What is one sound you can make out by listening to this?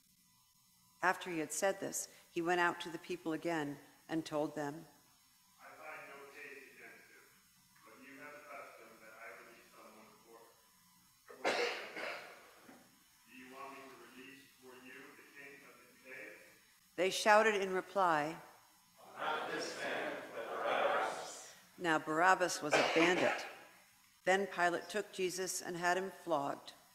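A woman reads aloud calmly through a microphone in a large echoing room.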